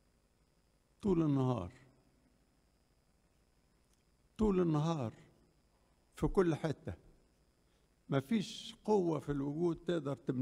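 An elderly man speaks slowly into a microphone, pausing between phrases.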